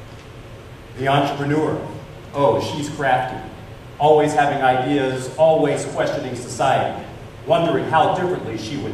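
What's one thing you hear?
A man reads aloud with expression through a microphone in a large hall.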